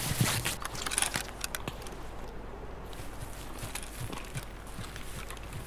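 Footsteps tread softly through grass.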